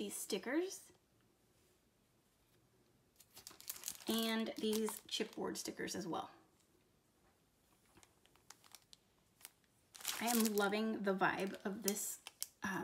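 Plastic sticker packs crinkle as they are handled.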